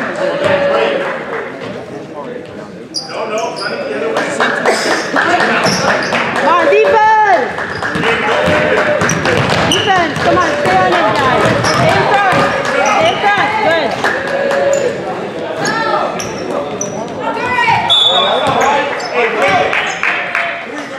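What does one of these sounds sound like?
A crowd of young spectators shouts and cheers in a large echoing gym.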